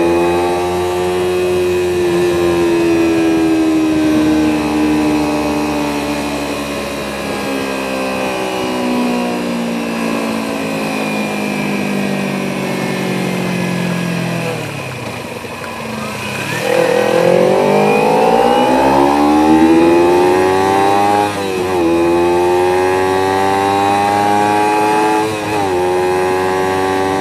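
A car engine hums steadily, winds down to a low idle, then revs up again through several gear changes.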